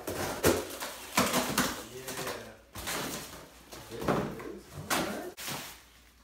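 Cardboard flaps scrape and thump as a box is opened.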